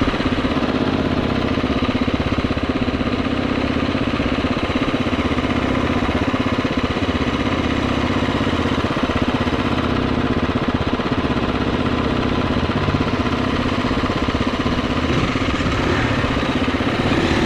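Several dirt bike engines idle and rumble close by.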